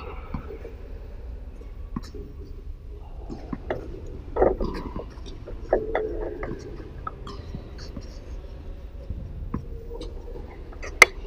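Tennis rackets strike a ball back and forth in a quick volley.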